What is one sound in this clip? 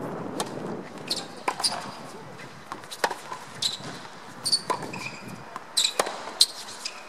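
A tennis ball is struck with a racket, with sharp pops now and then.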